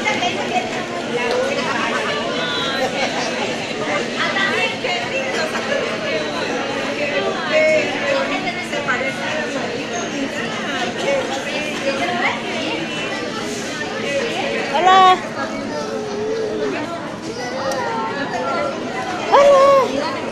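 A woman laughs and talks close by.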